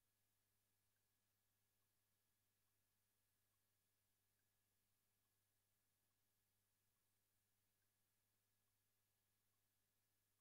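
Keyboard keys tap softly.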